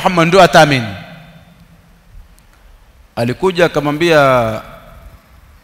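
A man speaks slowly and thoughtfully into a nearby microphone, with long pauses.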